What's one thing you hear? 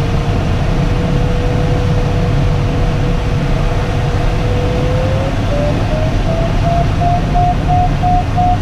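Wind rushes steadily past a cockpit.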